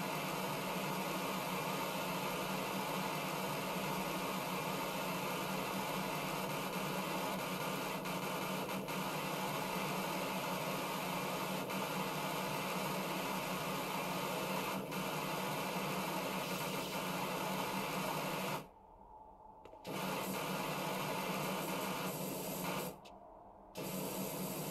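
A pressure washer sprays a steady hissing jet of water, stopping briefly now and then.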